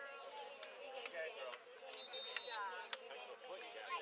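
Hands slap together as players pass in a line.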